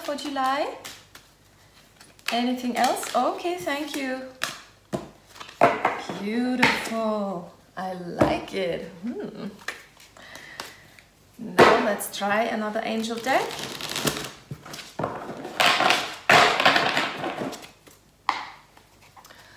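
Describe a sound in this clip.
A woman speaks calmly and close by, with pauses.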